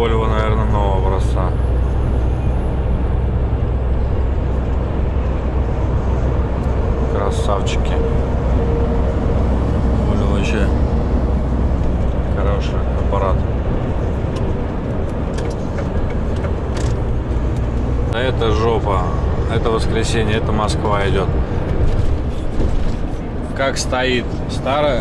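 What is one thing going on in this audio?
Tyres roll on the highway with a low rumble.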